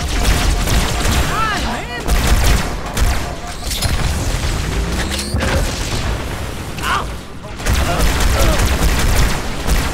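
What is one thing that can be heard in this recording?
Plasma blasts burst and crackle.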